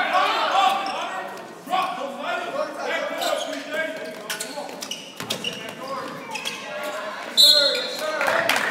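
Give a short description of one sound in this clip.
Young men shout to one another during play.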